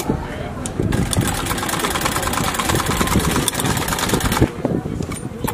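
A treadle sewing machine runs with a fast rattling whir.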